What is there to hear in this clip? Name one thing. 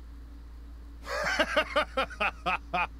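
A man chuckles.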